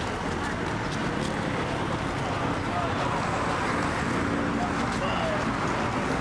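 Cars pass by on a road.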